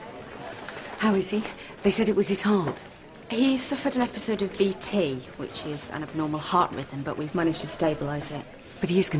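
A young woman speaks calmly and earnestly.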